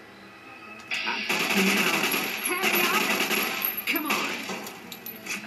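Gunfire bursts out loudly in rapid shots.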